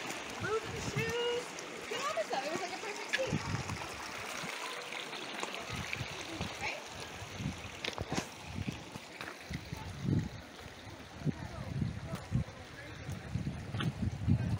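A shallow stream trickles and babbles over pebbles.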